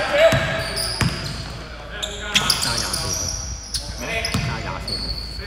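A basketball bounces on a hardwood floor in an echoing hall.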